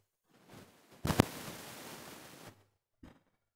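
A heavy door slides shut with a rushing scrape.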